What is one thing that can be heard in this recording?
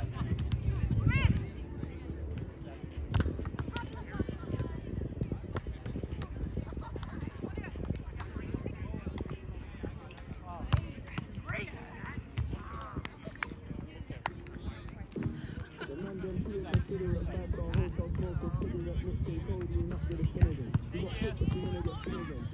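Distant voices of people playing call out across an open field.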